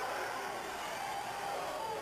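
A man yells with strain.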